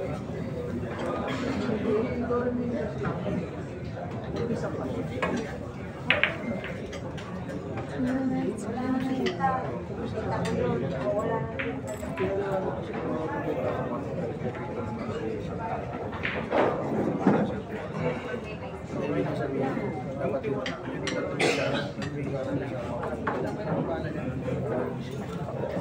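A crowd of people chatters.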